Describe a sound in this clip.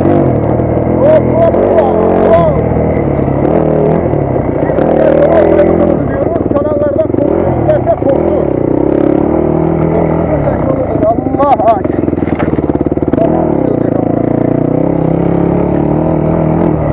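A dirt bike engine revs and roars loudly up close, rising and falling in pitch.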